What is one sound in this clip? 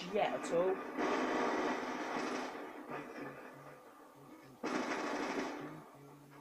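Rapid gunfire from a video game bursts out of a television speaker.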